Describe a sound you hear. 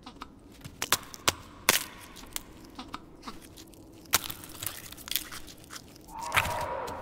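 Eggshells tap and crack.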